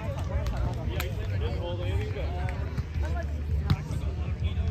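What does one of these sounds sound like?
A volleyball thumps off a player's hands.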